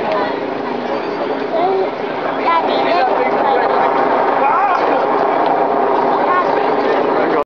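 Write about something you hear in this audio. A crowd of people talk and call out nearby, outdoors.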